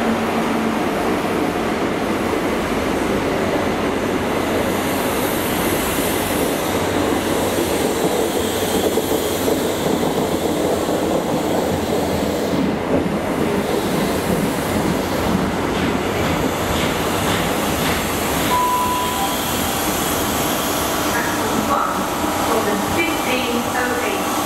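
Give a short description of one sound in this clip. A passenger train rumbles slowly past along the tracks.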